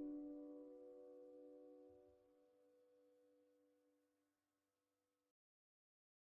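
An acoustic guitar chord rings out and slowly fades away.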